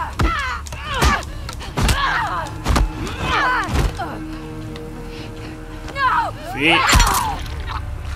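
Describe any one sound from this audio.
Blows and thuds land in a fight.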